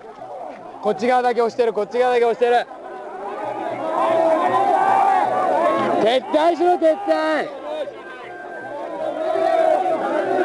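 A large crowd outdoors shouts and chants loudly.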